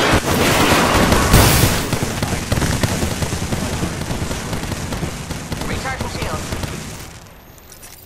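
Rapid gunfire and bullet impacts crackle loudly, then stop.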